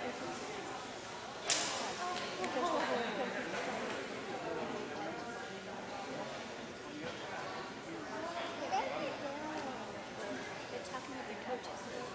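Young women talk quietly in a huddle nearby.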